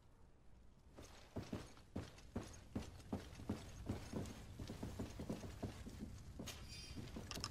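Footsteps thud quickly across a wooden floor.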